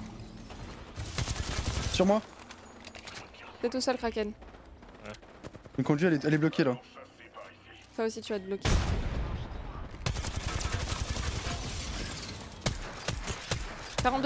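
Rapid video game gunfire crackles.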